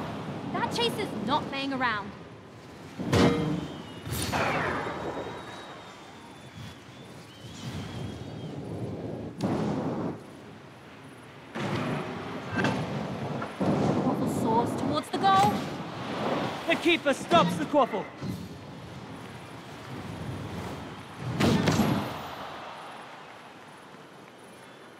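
A flying figure whooshes along in rushing bursts.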